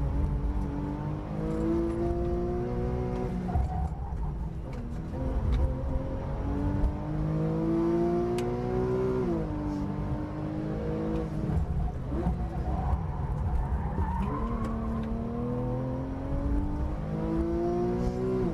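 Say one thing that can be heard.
A sports car engine roars loudly from inside the cabin, revving up through the gears and dropping as it shifts.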